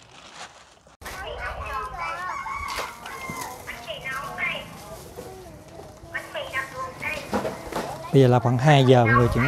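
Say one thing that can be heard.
A woman talks animatedly nearby.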